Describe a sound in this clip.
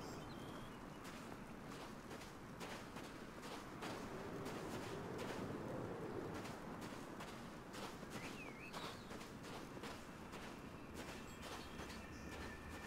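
Footsteps crunch on gravel and snow.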